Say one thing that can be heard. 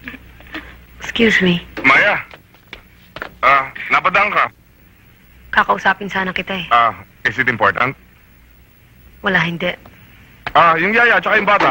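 A man speaks in reply close by.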